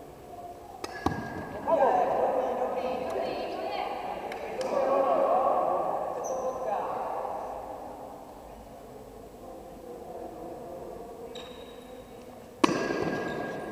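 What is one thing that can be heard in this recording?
A bat strikes a ball with a sharp crack in a large echoing hall.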